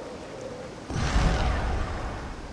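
A magical blast booms and whooshes.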